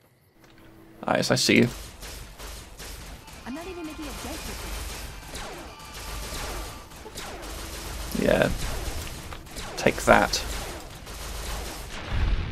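A laser gun fires in rapid bursts.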